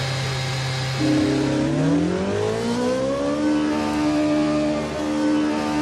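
A racing car engine revs up and rises in pitch as the car pulls away.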